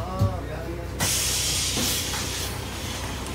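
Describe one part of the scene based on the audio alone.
Bus doors hiss open with a burst of air.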